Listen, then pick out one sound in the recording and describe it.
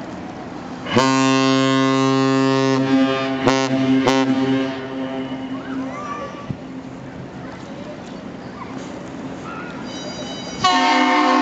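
A large ship's horn blasts loudly and deeply.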